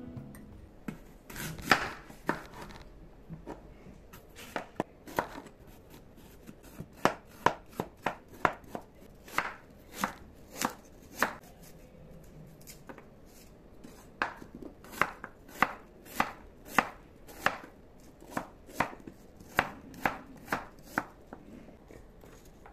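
A knife chops on a wooden board in sharp, regular knocks.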